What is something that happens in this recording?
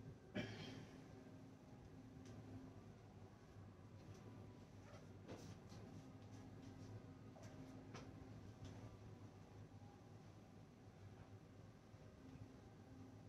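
A cloth rubs and squeaks against a whiteboard.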